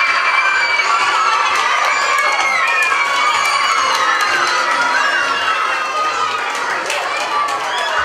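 Women clap their hands.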